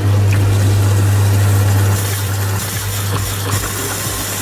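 Water runs from a tap and splashes steadily.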